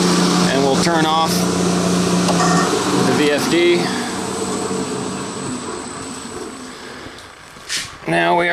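A machine hums steadily and then winds down.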